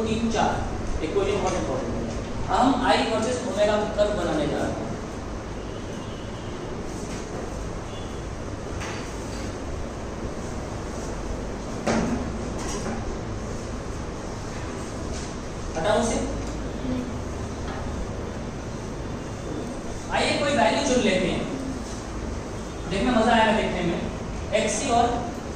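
A young man talks calmly in a slightly echoing room.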